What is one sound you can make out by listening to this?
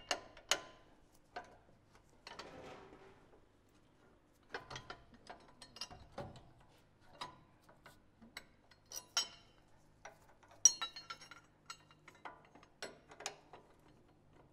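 Metal parts clink and knock as a bracket is fitted under a vehicle.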